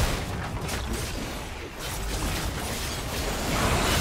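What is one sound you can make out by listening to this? Game spells whoosh and crackle in a fight.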